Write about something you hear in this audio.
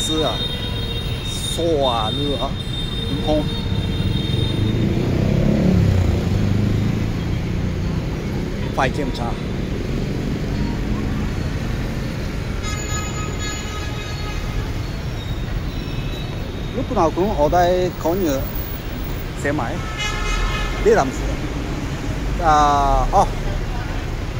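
City traffic rumbles steadily outdoors.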